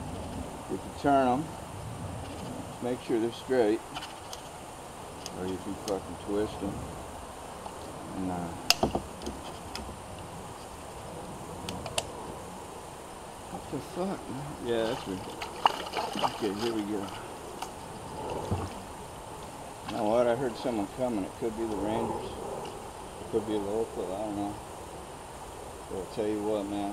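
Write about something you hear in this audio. A man talks loudly outdoors, heard from a short distance.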